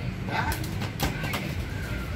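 A small boy kicks a plastic ball with a hollow thump.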